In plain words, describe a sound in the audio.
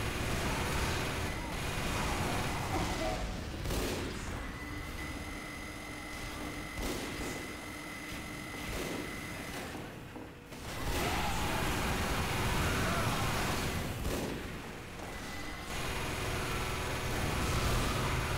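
A heavy machine gun fires in rapid, roaring bursts.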